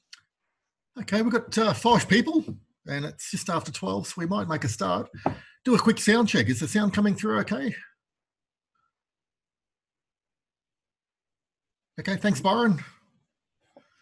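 A man speaks calmly into a close microphone, explaining with pauses.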